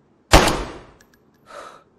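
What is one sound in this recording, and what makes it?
A pistol fires a single loud shot that echoes briefly.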